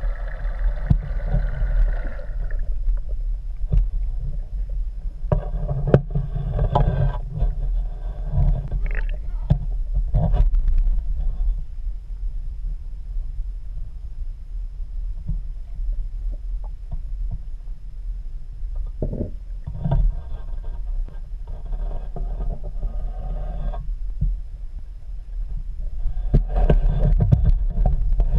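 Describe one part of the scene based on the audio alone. Water rumbles and gurgles with a low, muffled sound underwater.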